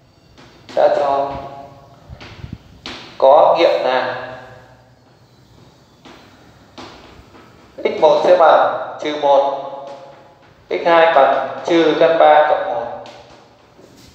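A man speaks calmly, as if explaining to a class.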